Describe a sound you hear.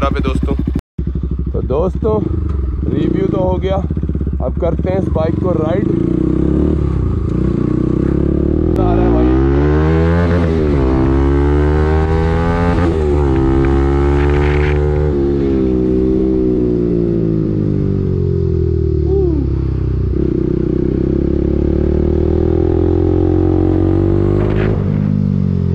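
A motorcycle engine hums and revs up and down as it rides along.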